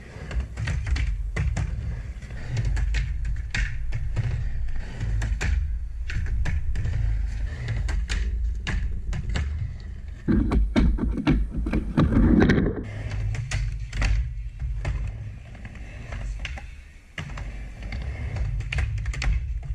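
Skateboard wheels roll and rumble across a wooden ramp.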